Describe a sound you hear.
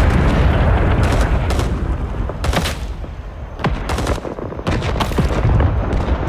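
Rifle shots crack out in quick bursts close by.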